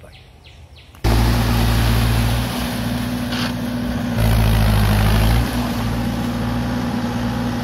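A tractor engine rumbles loudly and steadily.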